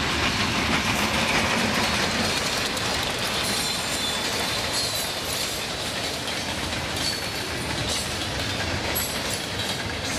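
Freight cars clatter and squeal on the rails.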